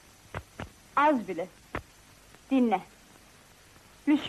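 A young woman speaks, close by.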